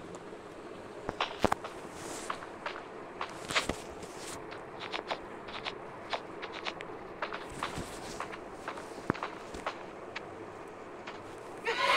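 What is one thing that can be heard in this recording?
Footsteps tap on hard ground at a walking pace.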